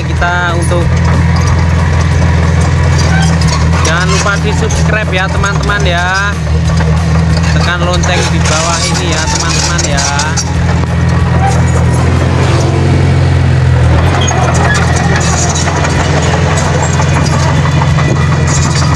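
A bulldozer blade scrapes through dirt and rocks.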